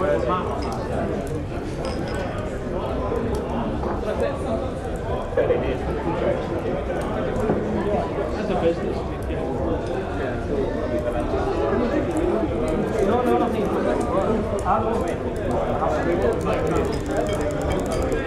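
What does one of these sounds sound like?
A crowd of men and women chatters and murmurs indoors.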